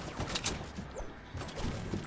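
A pickaxe strikes wood with dull knocks.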